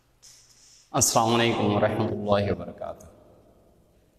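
A man speaks loudly into a microphone in an echoing room.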